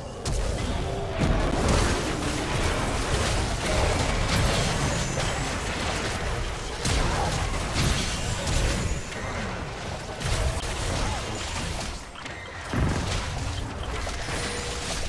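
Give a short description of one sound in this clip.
Fantasy game spell and combat effects whoosh and crash.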